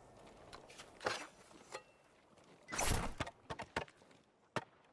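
A sword swishes and slices through bamboo.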